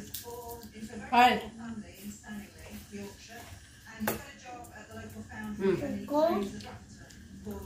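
A young child speaks in a high voice.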